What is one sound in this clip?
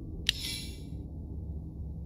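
A bright magical chime sparkles briefly.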